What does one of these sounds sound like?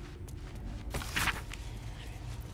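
A book's pages rustle as the book opens.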